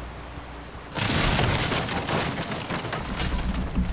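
A loud rushing burst erupts suddenly and roars on.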